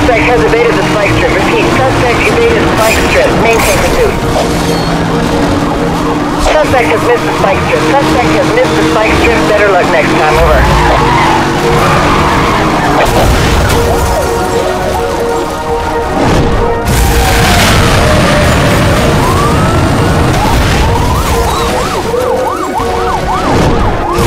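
Police sirens wail and rise and fall.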